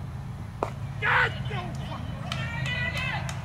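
Players shout out on the field.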